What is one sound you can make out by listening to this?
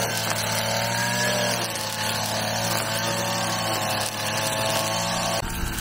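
A string trimmer cuts through grass and weeds.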